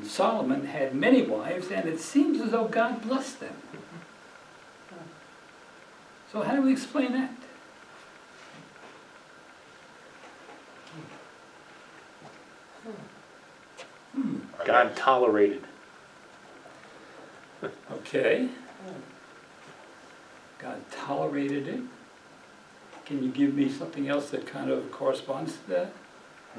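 An elderly man speaks calmly in bursts, with long pauses.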